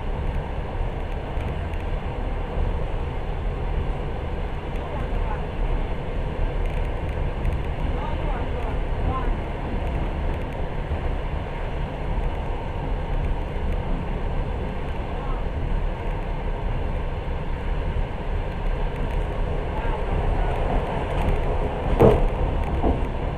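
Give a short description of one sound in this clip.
Wind rumbles steadily outdoors and rustles the trees.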